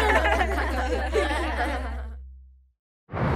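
A cartoon boy laughs cheerfully.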